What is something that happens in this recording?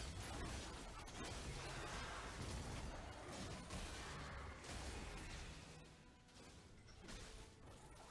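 Magic blasts and hits crackle and thump in a busy fight.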